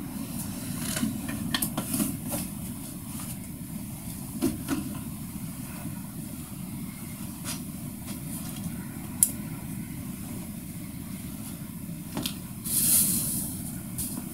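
A man's clothes rustle and his steps shuffle close by.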